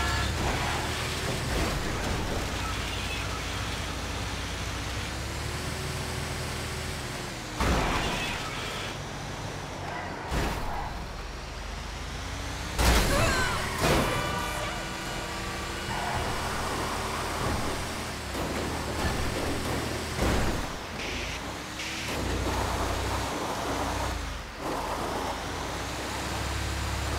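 A heavy truck engine rumbles steadily as it drives along a road.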